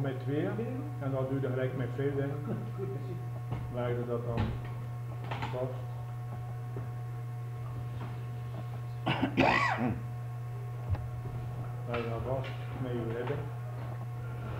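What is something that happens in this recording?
A middle-aged man speaks calmly and close up, with long pauses.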